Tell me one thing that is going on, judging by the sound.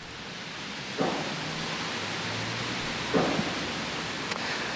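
A man speaks steadily into a microphone, reporting.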